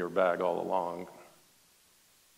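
A middle-aged man speaks through a microphone in a large echoing hall.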